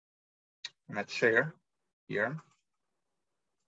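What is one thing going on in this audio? A man speaks briefly and calmly over an online call.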